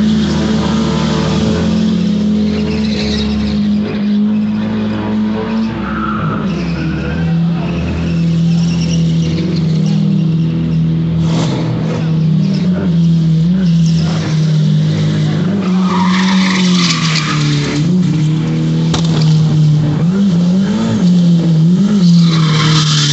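A turbocharged car engine revs hard during a burnout.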